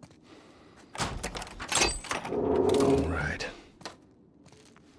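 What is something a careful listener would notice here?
A heavy door is forced open with a loud scrape and thud.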